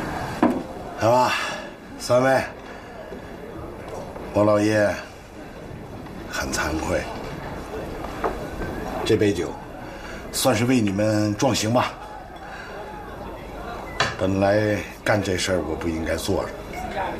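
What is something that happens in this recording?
An elderly man speaks calmly and warmly nearby.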